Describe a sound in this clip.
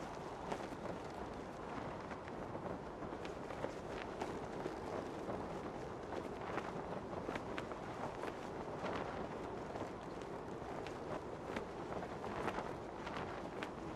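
Wind rushes steadily and loudly.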